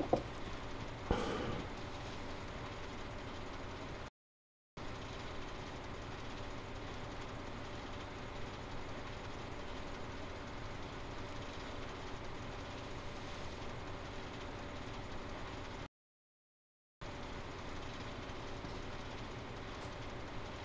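A harvester engine drones steadily.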